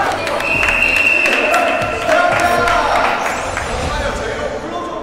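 Young men shout and cheer with excitement.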